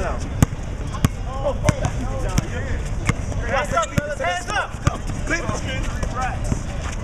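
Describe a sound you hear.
A basketball bounces hard on an outdoor court at a steady pace.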